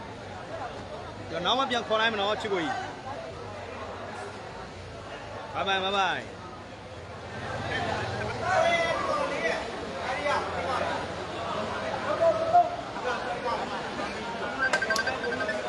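A crowd chatters steadily in the background.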